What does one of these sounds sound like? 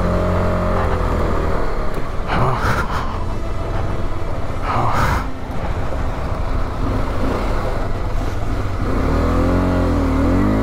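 Wind rushes past in gusts.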